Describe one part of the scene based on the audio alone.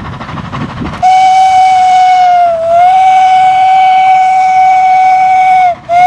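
A steam locomotive's whistle blows loud and long.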